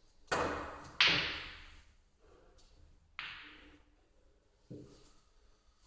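Billiard balls clack against each other and roll on the table.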